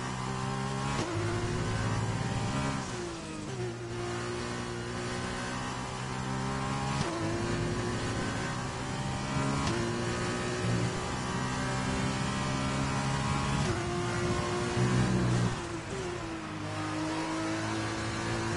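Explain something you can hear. A racing car engine screams at high revs, shifting up through the gears with sharp breaks in pitch.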